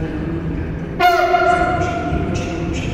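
A train horn sounds a short, loud blast.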